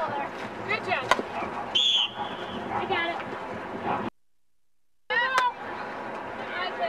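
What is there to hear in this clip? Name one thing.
Young women shout and call to each other outdoors.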